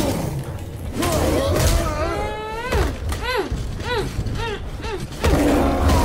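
A creature roars and shrieks.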